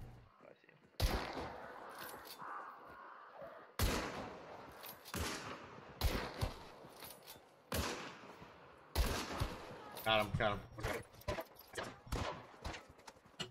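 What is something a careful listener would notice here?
Rifle shots crack sharply again and again.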